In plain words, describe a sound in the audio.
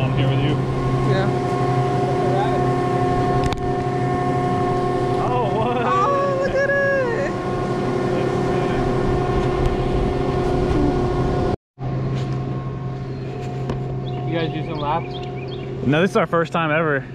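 A chairlift motor hums steadily nearby.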